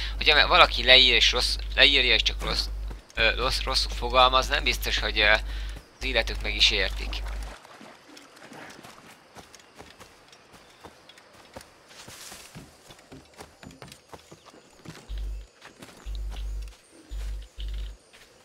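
Footsteps rustle through dense grass and leaves.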